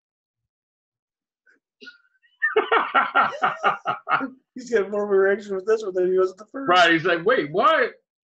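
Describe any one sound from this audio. A man laughs over an online call.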